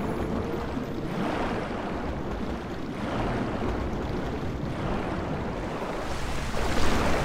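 Water gurgles and swirls with slow swimming strokes underwater.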